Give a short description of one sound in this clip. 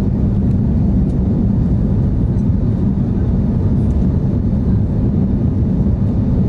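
Jet engines roar steadily in a loud, low rumble inside an airliner cabin.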